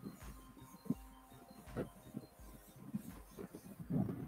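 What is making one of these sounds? An airbrush hisses softly in short bursts.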